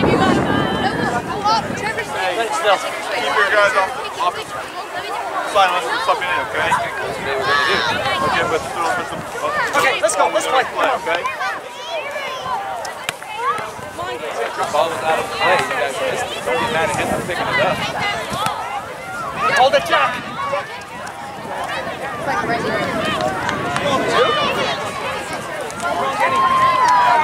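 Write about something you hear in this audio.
Young players and spectators shout and call out outdoors across an open field.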